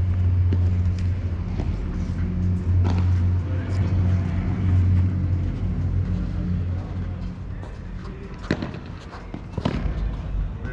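Padel rackets strike a ball with sharp pops outdoors.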